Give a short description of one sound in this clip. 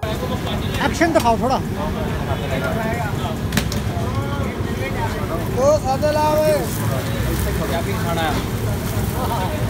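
Flatbreads sizzle on a hot griddle.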